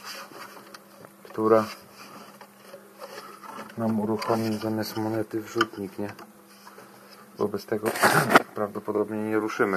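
Plastic machine parts knock and rattle as a hand handles them.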